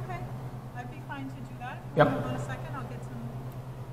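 A woman speaks through an intercom speaker.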